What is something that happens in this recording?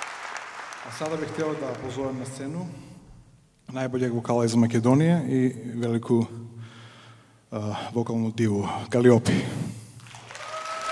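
A man speaks calmly through a microphone and loudspeakers in a large hall.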